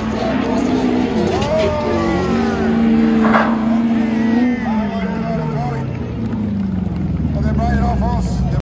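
Racing car engines roar and rev loudly in the distance, outdoors.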